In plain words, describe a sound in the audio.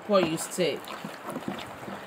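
A soft paste squelches as it is stirred by hand.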